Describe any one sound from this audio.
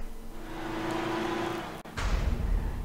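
A car engine hums at idle.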